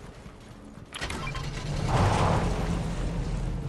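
A truck engine starts and roars.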